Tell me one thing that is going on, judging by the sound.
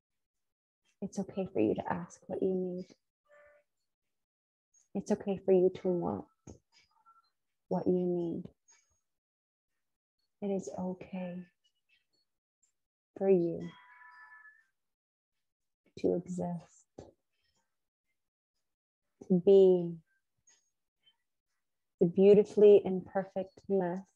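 A woman speaks calmly and slowly in short phrases with long pauses, close to a microphone.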